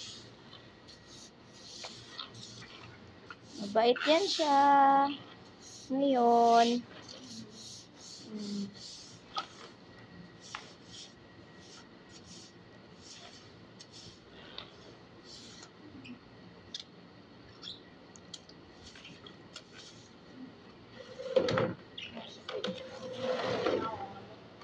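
A broom swishes and scrubs across a wet floor.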